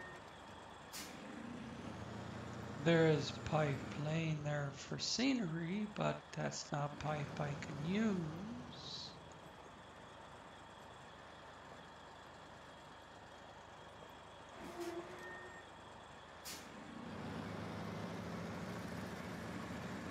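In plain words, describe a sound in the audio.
A heavy truck engine rumbles steadily and grows louder near the end.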